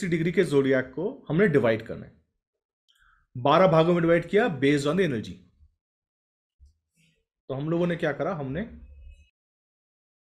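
A young man speaks calmly and close to a microphone, with pauses.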